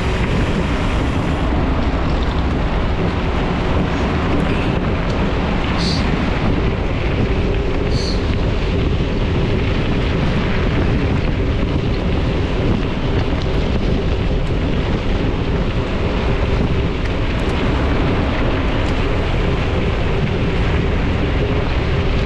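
Bicycle tyres crunch over a gravel dirt track.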